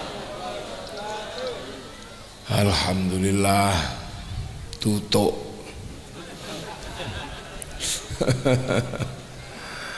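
A man speaks with animation into a microphone, heard through loudspeakers outdoors.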